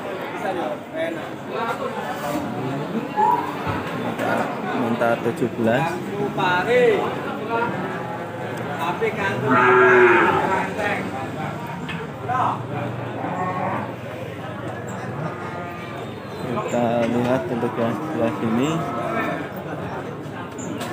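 Several men talk nearby, their voices overlapping.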